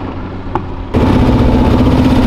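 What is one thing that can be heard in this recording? Another car engine runs close by.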